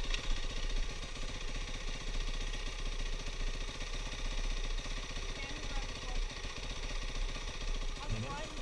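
A dirt bike engine idles with a fast, steady rattle close by.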